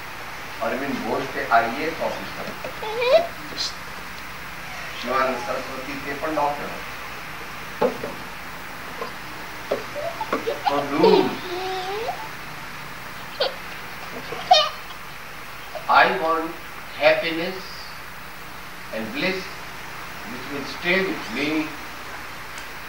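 An elderly man speaks slowly into a microphone, with pauses.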